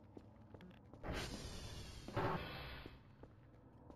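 A heavy door slides open with a rushing hiss.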